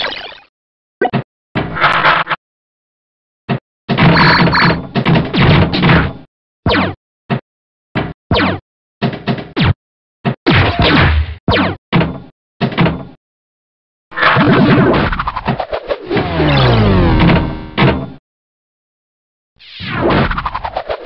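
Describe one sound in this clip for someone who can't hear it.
Electronic pinball game sounds beep, chime and bounce in quick bursts.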